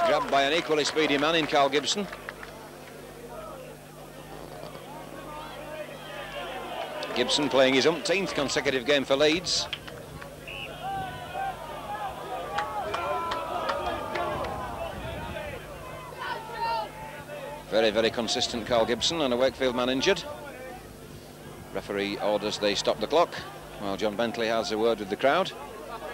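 A large crowd murmurs in the stands outdoors.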